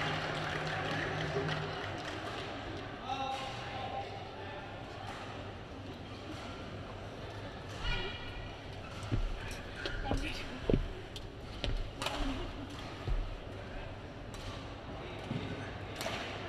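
A mop swishes across a court floor.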